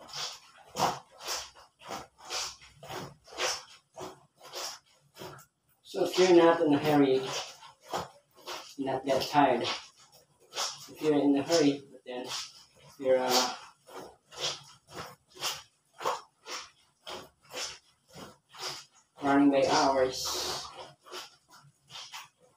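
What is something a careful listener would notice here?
Wet cloth is scrubbed and squelched in a basin of water in quick rhythmic strokes.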